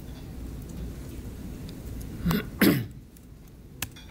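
Keys tap on a computer keyboard.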